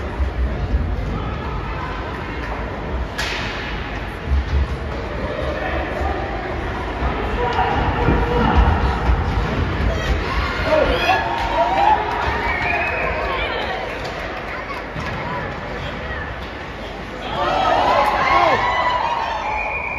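Skates scrape and hockey sticks clack on the ice.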